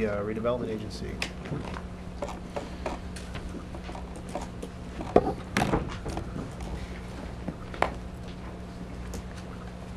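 Footsteps tap across a floor.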